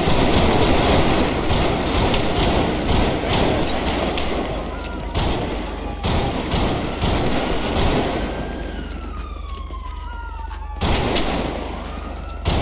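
Pistol shots crack in quick bursts.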